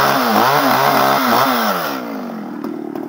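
A chainsaw revs as it cuts into wood.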